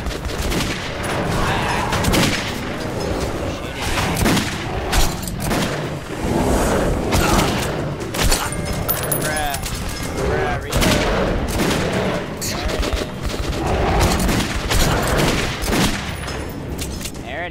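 Gunshots fire rapidly, close by.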